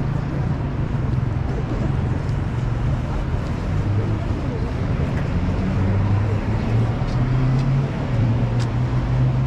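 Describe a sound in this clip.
Footsteps tap on paved ground outdoors.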